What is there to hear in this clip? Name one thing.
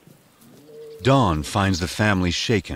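Lions growl and snarl as they play close by.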